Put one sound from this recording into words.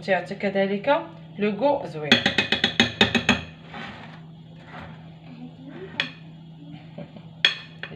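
A spatula softly scrapes as cream is spread in a glass dish.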